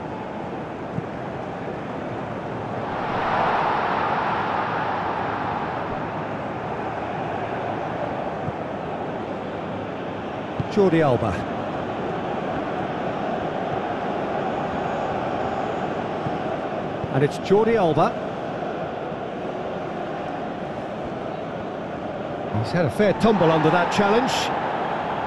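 A large crowd murmurs and cheers steadily in an open stadium.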